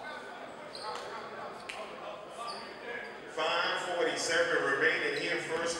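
A crowd of spectators murmurs in an echoing gym.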